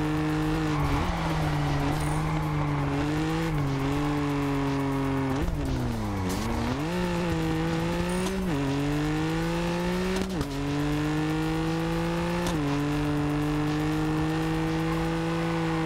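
A car engine roars loudly, its pitch dropping and climbing with each gear change.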